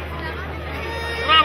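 A violin plays.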